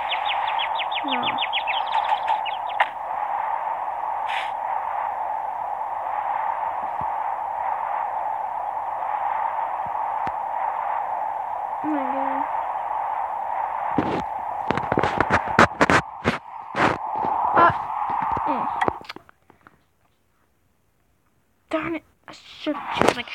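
A young boy speaks briefly and close to a microphone.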